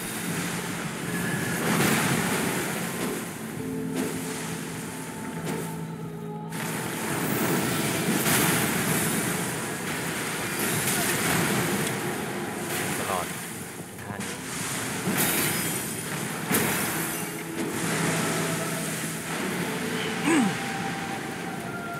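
Water splashes heavily as a huge creature thrashes through it.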